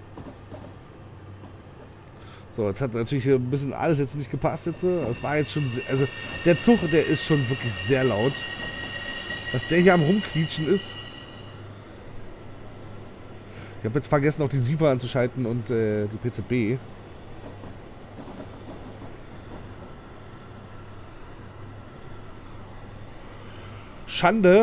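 A train's motor hums steadily as it rolls along the tracks.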